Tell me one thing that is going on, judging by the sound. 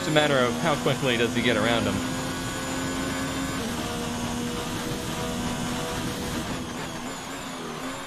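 A racing car engine drones at high revs.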